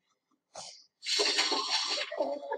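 A small dog knocks over a tree with a crash.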